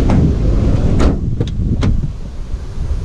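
A van's front door clicks open.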